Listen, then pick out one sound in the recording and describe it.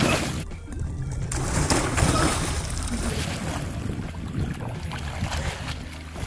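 Water splashes loudly as a child jumps in.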